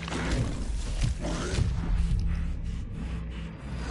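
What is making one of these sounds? A heavy blade strikes flesh with a wet thud.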